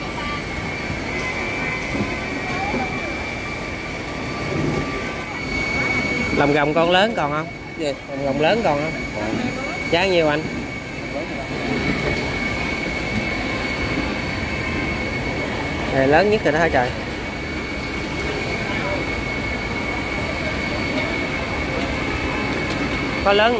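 A market crowd murmurs steadily in the background.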